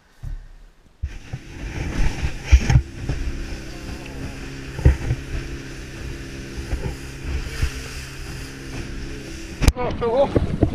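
A motorboat's hull thumps over waves.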